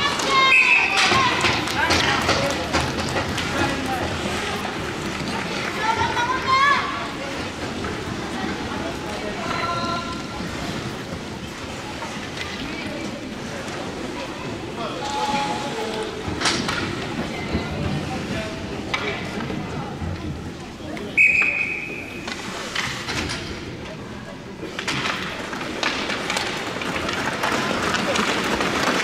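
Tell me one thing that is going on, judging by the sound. A crowd murmurs and shouts in a large echoing rink.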